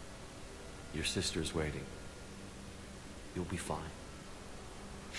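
A man speaks calmly and briefly, close by.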